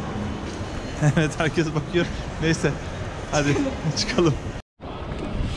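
A young man talks cheerfully close to the microphone.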